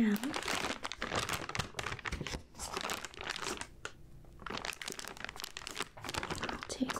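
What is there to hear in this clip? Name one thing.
A plastic package crinkles and rustles close by.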